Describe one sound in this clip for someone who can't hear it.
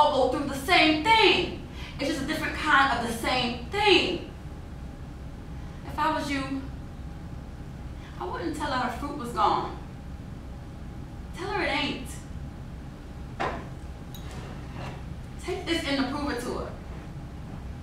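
A second woman answers in a calm voice, close by.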